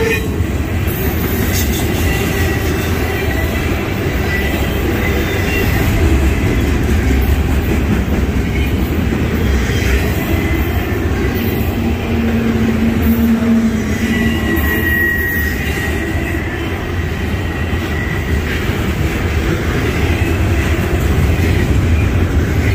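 A long freight train rumbles past close by.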